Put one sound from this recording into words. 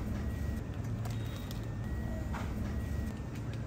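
Snack packets crinkle as they are handled.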